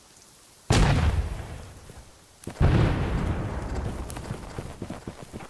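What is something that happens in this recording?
Muskets fire in loud blasts that echo and fade away.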